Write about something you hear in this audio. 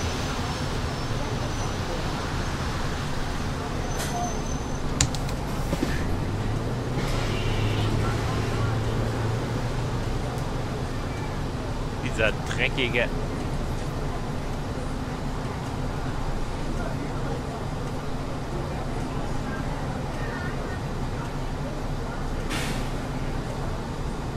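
A bus engine hums low and steadily.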